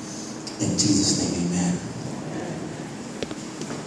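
A man speaks loudly through a microphone in an echoing hall.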